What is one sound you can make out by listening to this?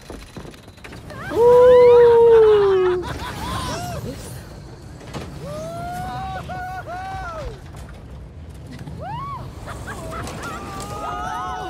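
A roller coaster rumbles and rattles along its track.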